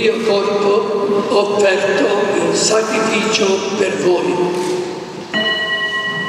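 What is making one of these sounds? An elderly man chants in a large echoing hall.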